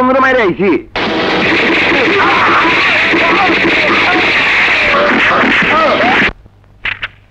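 Men shout loudly in alarm.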